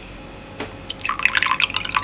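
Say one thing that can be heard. Liquid pours and trickles into a small glass.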